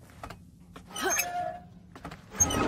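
A metal valve wheel creaks as it turns.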